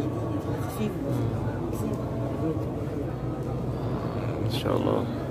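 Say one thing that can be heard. A crowd of men murmurs and chatters in a large echoing hall.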